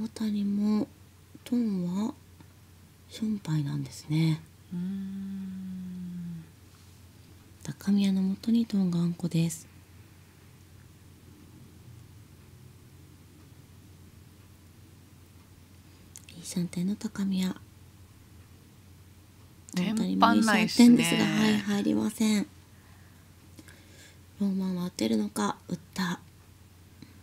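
A woman speaks calmly into a microphone, in short bursts.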